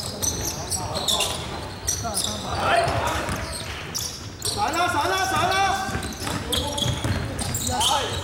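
Young men shout and call out to each other across the hall.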